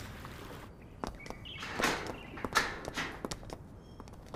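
Footsteps tap on a paved path.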